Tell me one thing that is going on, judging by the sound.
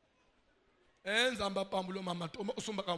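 A man shouts with fervour through a loudspeaker.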